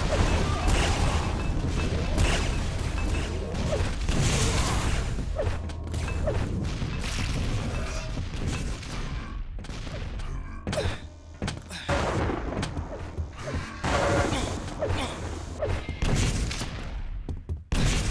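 An electric beam weapon crackles and hums as it fires.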